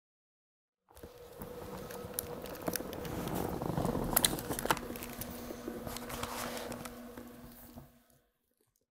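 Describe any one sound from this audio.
A microphone rustles and bumps as it is handled.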